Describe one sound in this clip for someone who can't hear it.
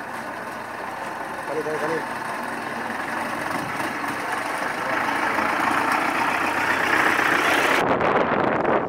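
A vehicle engine runs as the vehicle slowly drives past close by.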